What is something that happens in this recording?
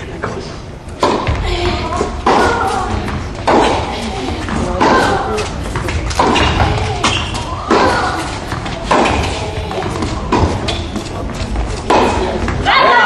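A tennis ball is struck back and forth with sharp racquet pops in an echoing indoor hall.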